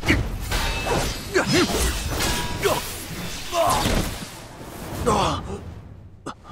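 A sword swishes and whooshes through the air.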